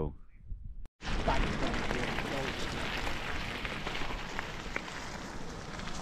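Bike tyres crunch over gravel.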